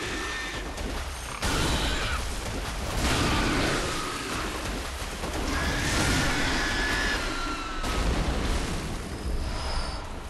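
Blades slash and strike flesh.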